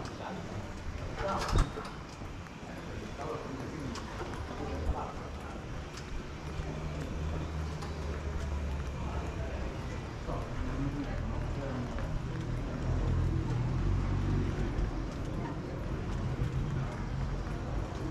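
Footsteps walk steadily on a stone pavement close by.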